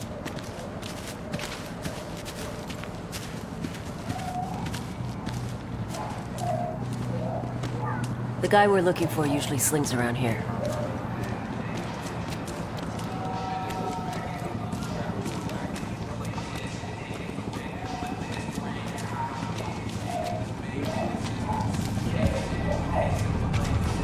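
Footsteps fall on wet pavement.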